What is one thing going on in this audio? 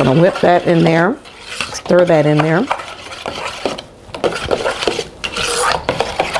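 A spatula scrapes and stirs batter in a metal bowl.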